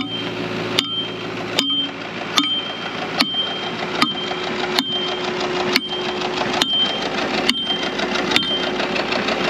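A metal ice chipper strikes hard ice with ringing clanks.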